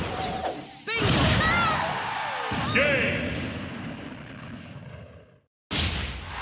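A game-ending blast booms and fades.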